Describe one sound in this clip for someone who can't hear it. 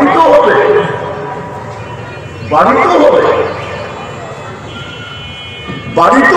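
An elderly man preaches forcefully into a microphone, his voice amplified and echoing.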